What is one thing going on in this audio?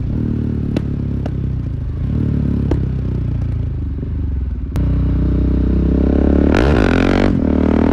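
A motorcycle engine roars steadily close by, its pitch rising and falling as it accelerates.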